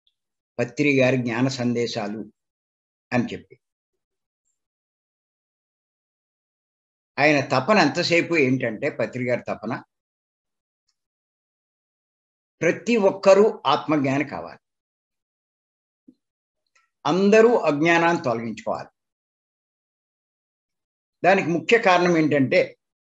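An elderly man speaks with animation in short bursts, heard through an online call.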